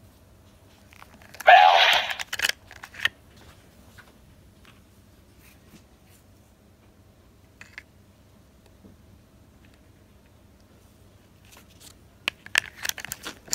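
A plastic medal clicks and snaps into a toy's slot.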